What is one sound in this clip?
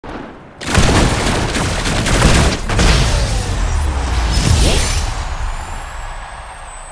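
A loud shimmering burst of game sound effects sweeps in and slowly fades.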